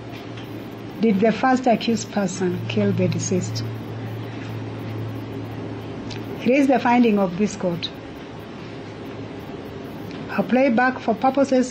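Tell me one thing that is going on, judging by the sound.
A middle-aged woman speaks calmly and slowly into a microphone, in short phrases with pauses.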